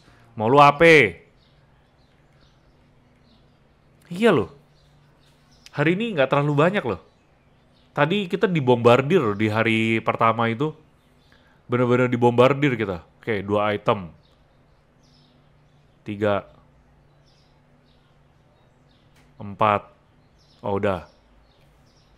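A young man talks with animation into a nearby microphone, in short bursts with pauses.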